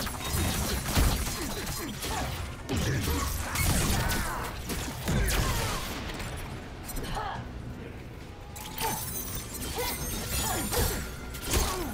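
Icy blasts whoosh and crackle.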